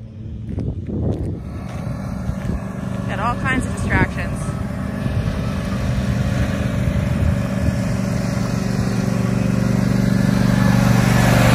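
A zero-turn ride-on mower engine hums and grows louder as the mower drives closer.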